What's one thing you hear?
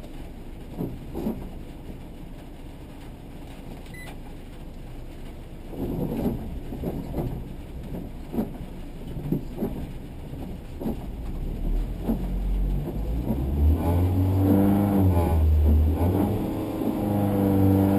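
Windscreen wipers swish across the glass.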